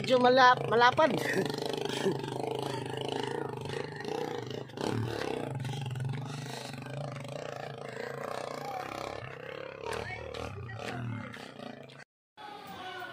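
A motorcycle engine rumbles as it rides away.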